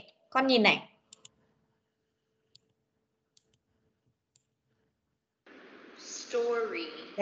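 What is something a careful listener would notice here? A child speaks a short word over an online call.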